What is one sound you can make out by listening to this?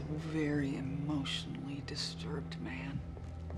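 A woman speaks anxiously up close.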